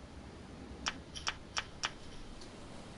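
Soft clicks tick several times in quick succession.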